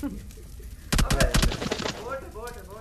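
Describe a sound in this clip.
A rifle fires a quick burst of shots.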